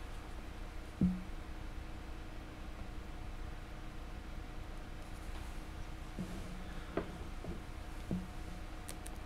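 Hands handle a plastic model with soft knocks.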